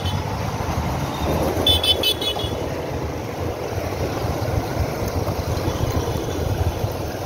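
A motorcycle engine rumbles steadily close by while riding.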